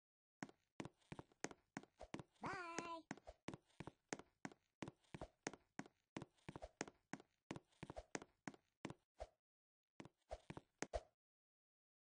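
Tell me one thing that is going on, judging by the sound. Quick footsteps tap on a wooden floor.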